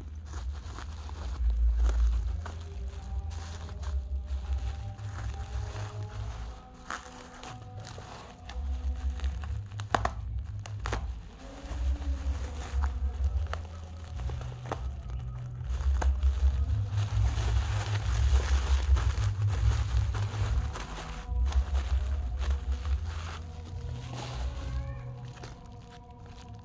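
Bubble wrap crinkles and rustles as it is handled.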